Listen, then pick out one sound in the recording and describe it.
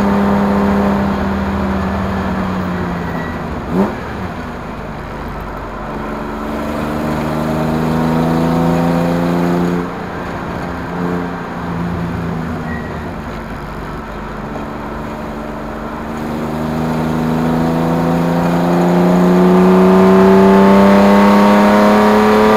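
A car engine hums steadily, dropping and rising in pitch as the car slows and speeds up.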